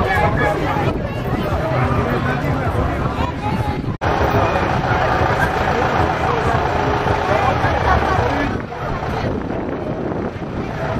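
A crowd of children and adults chatters and calls out loudly outdoors.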